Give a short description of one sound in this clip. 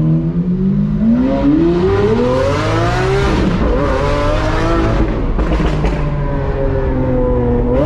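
A sports car engine revs hard and roars.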